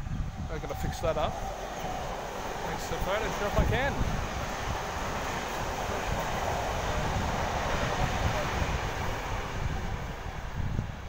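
A train rumbles past at a distance.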